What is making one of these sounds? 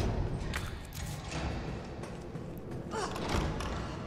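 A heavy door swings open.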